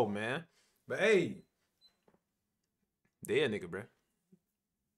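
A young man speaks with animation, close to a microphone, in short bursts.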